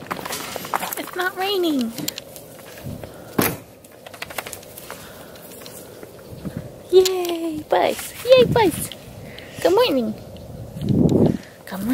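Dogs run and scamper through grass.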